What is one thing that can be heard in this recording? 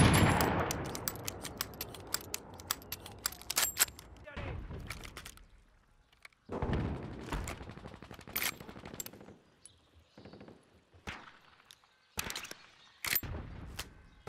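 Metal clicks and clacks as a gun is reloaded.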